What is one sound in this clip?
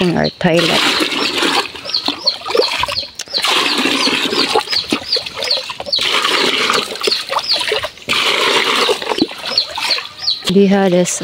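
Water pours and splashes into a plastic tub.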